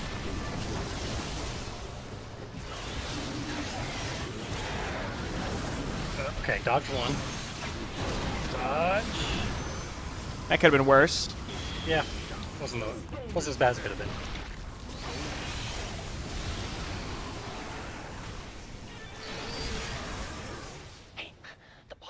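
Laser weapons fire and blasts crackle in a noisy battle.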